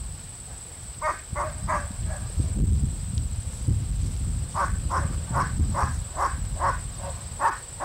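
Puppies yelp and bark in short bursts.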